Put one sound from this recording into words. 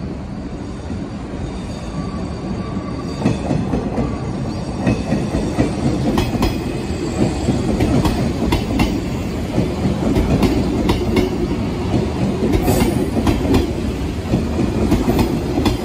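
A train approaches and rumbles past close by.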